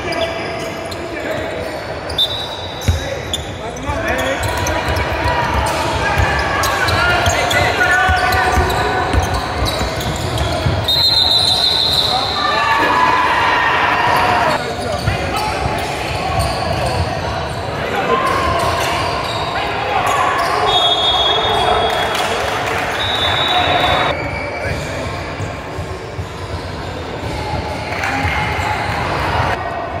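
Boys and men talk and call out nearby in an echoing hall.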